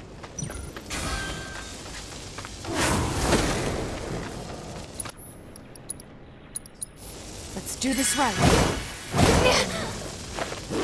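Punches and blows thud in a game fight.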